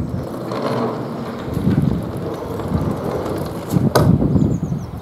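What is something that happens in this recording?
A sliding door rumbles along its track and bangs shut.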